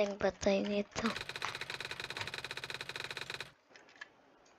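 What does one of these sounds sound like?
Rapid, even blips tick as text types out letter by letter.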